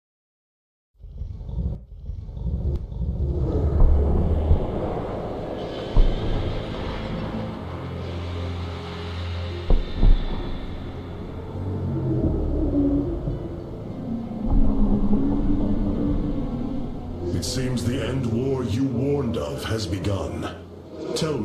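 A deep rumble rolls steadily overhead.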